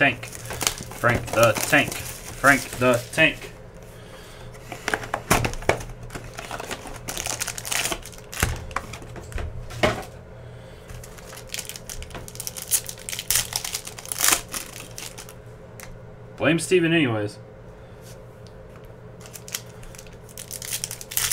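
Cardboard boxes and card packs rustle and tap in hands.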